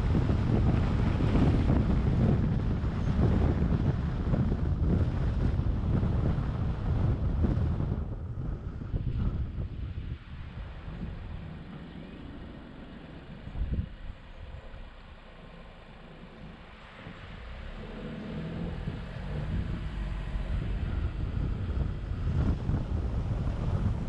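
A car drives along a road with a steady low rumble of engine and tyres.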